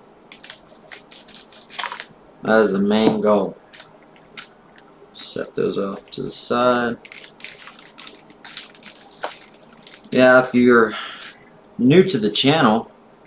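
Foil card wrappers crinkle and rustle in hands.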